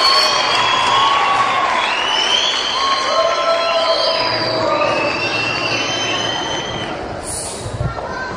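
A large choir of children sings together in an echoing hall.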